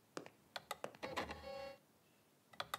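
A disc player's tray whirs open.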